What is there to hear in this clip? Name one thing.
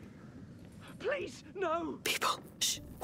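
A young woman speaks in an urgent hushed voice.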